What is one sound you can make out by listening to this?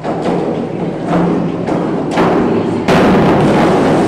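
A diving board thumps and rattles as a diver springs off.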